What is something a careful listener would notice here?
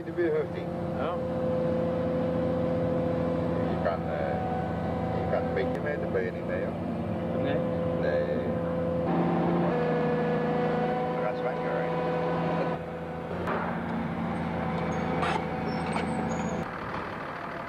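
An excavator's diesel engine rumbles steadily close by.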